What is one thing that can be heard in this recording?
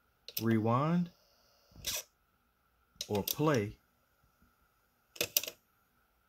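A cassette deck mechanism clicks and clunks as it shifts.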